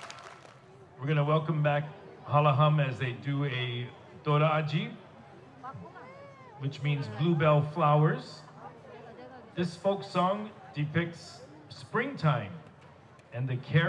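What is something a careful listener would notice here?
A man speaks through a microphone over loudspeakers, in short phrases.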